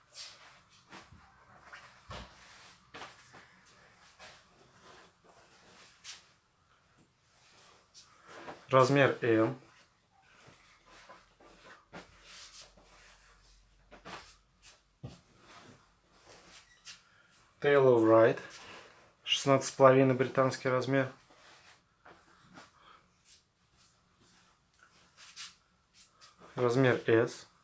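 Hands smooth and shift cotton shirts on a pile, the fabric rustling.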